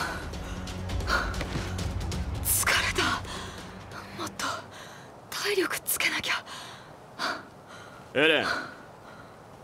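A young man speaks wearily, panting.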